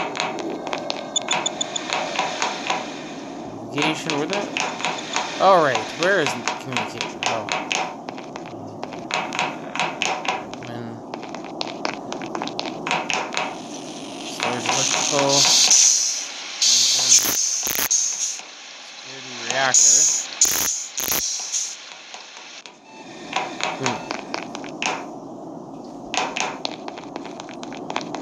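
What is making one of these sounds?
Quick footsteps patter on a metal floor.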